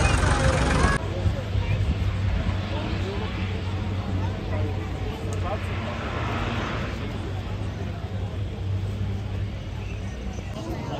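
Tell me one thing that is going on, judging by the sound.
Aircraft engines drone in the distance.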